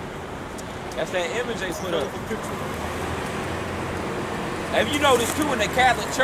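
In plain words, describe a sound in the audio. A man preaches loudly outdoors, nearby.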